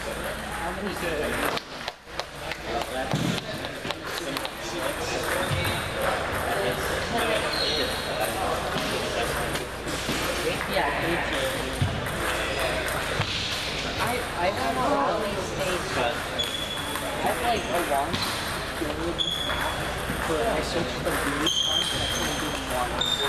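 Men talk and call out in the background.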